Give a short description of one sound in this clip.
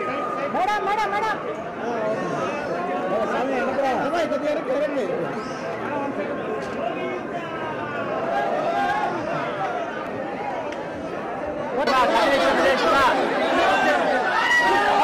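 A crowd of men and women chatters all around, close by.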